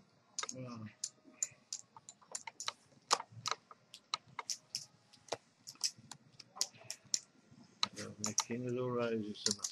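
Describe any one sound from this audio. Poker chips click and clatter against each other.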